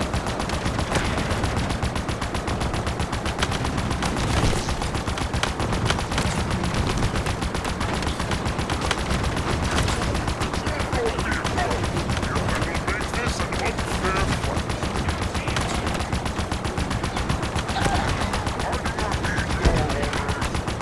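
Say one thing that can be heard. Small explosions thump nearby.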